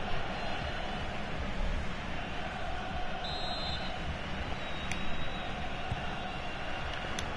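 A stadium crowd roars and murmurs steadily throughout.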